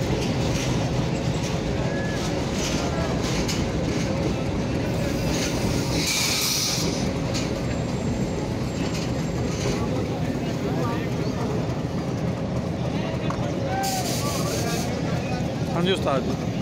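A crowd chatters in a large open space.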